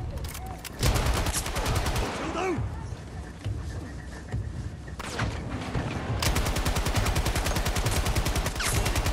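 A heavy machine gun fires in rapid bursts close by.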